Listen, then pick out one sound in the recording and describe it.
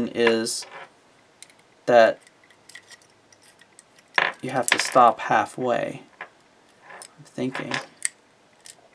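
A key scrapes and clicks inside a small metal padlock.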